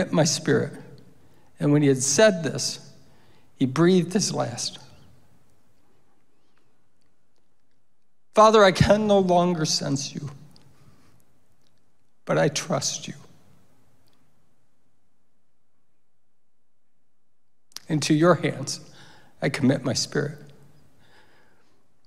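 A middle-aged man speaks slowly and earnestly into a microphone, with long pauses.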